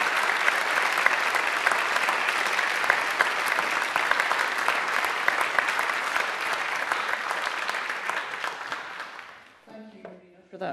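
A large crowd applauds loudly in an echoing hall, then the applause fades away.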